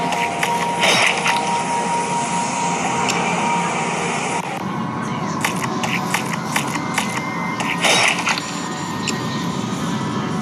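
Short electronic game sound effects blip and splat.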